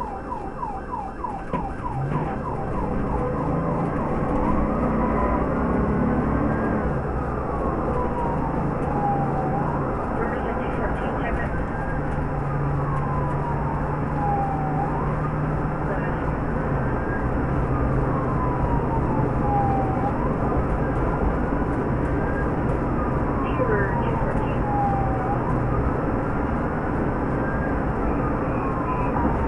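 A car engine hums as the car drives fast along a road.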